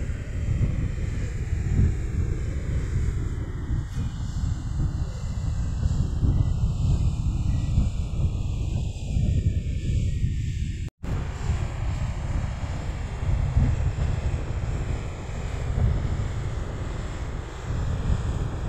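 Waves crash and wash up onto a beach.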